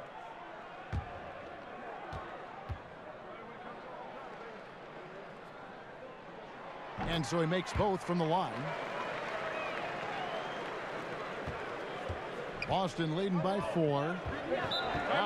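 A basketball bounces on a court.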